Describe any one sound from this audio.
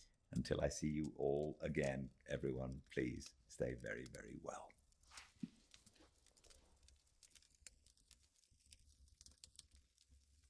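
A fire crackles softly in a fireplace.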